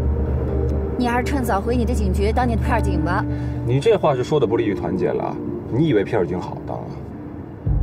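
A young man talks inside a car.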